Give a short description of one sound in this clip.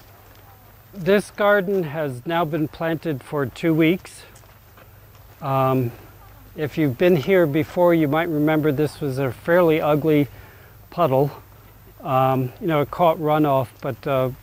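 An older man speaks calmly and close by, heard through a microphone.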